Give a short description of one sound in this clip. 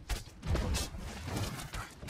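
Flames burst with a whoosh.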